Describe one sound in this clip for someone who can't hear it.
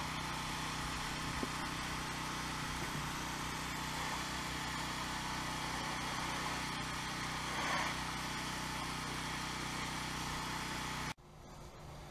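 A pressure washer engine drones steadily.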